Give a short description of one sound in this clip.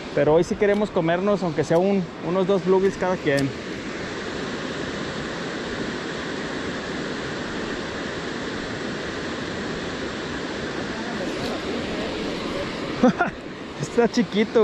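Water rushes steadily nearby, outdoors.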